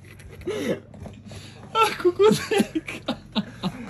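Young men grunt and strain close by.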